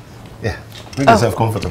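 A man speaks nearby in a low voice.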